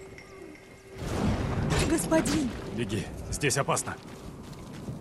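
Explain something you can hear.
A wooden gate creaks and bangs open.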